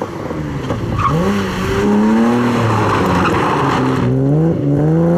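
Tyres squeal and screech on tarmac.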